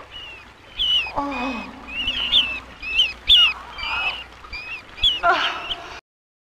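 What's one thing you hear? Rats squeak shrilly.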